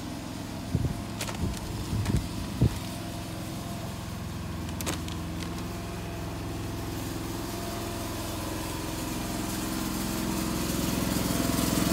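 A van engine idles nearby.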